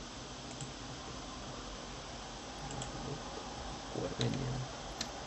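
Short menu clicks sound as a selection moves.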